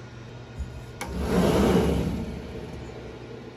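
A machine door slides shut with a rumble.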